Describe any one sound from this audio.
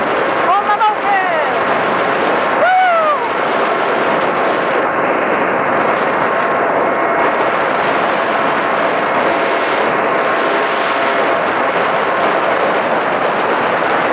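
A motorcycle engine hums as it rides along.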